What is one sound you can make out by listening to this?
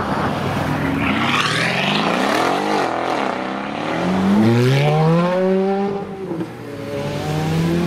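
A car engine roars as it accelerates away, rising sharply in pitch through several gear changes.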